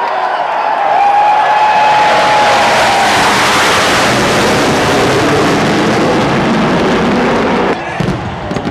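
Jet planes roar loudly overhead and fade away.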